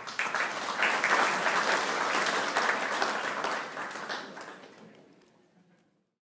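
An audience applauds and the clapping slowly fades.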